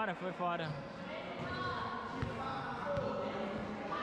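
A volleyball bounces on a hard floor.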